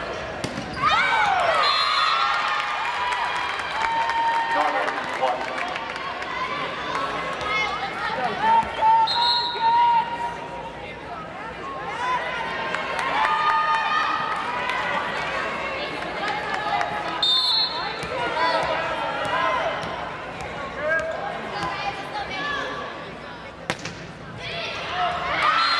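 A volleyball is smacked hard by hands.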